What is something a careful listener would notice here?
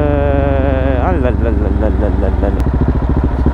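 A motorcycle engine roars loudly, then drops in pitch as the bike slows.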